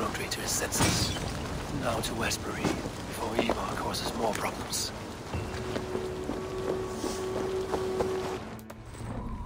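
Footsteps crunch over grass and dirt.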